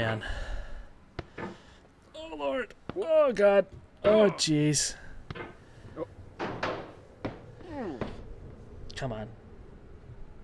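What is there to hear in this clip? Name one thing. A young man talks animatedly and groans into a close microphone.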